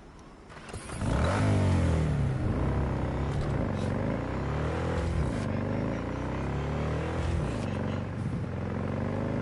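A motorcycle engine revs loudly, its pitch rising and falling as it speeds up and shifts gears.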